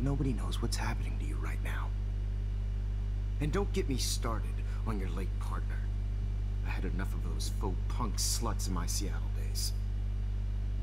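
A man speaks into a headset microphone.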